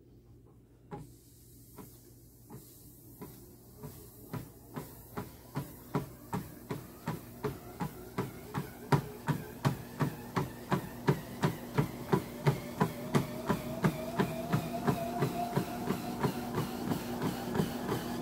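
Footsteps thud steadily on a treadmill belt, growing faster and louder.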